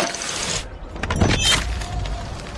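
A blade strikes with a sharp thud.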